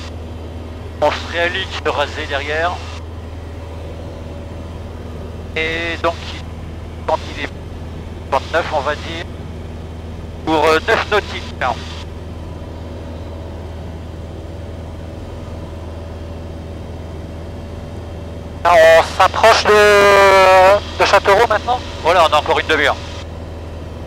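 A man speaks calmly through a headset intercom.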